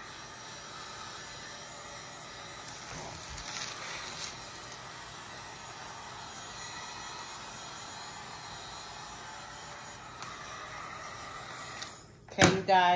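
A heat gun blows with a steady whooshing hum.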